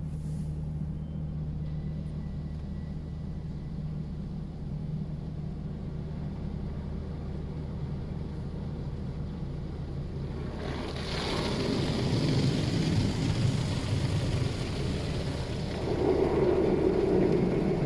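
Water sprays and patters on a windscreen.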